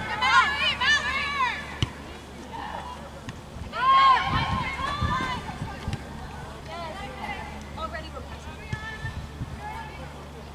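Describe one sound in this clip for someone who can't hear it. Players and spectators shout across an open field outdoors.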